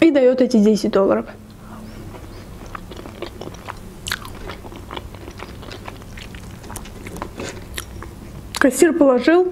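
A young woman chews crunchy food close to the microphone.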